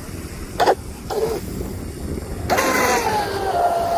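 Water sprays and hisses behind a fast model boat.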